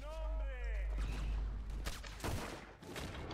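A loud explosion booms nearby.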